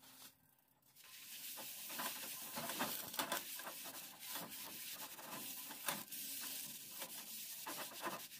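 A paper towel rubs and scrapes against a cast iron pan.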